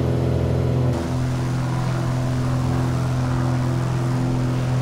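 A propeller plane's engine drones steadily from outside.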